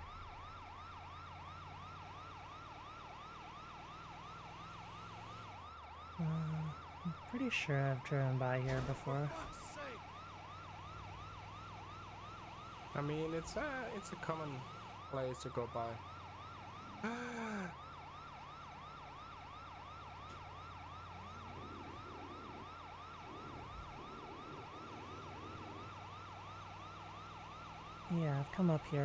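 An ambulance siren yelps rapidly and steadily.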